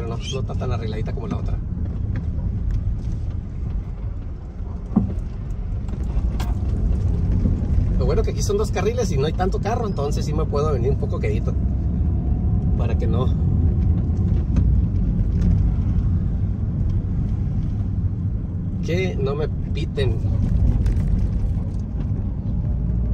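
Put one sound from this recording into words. A car engine hums and tyres roll steadily over the road.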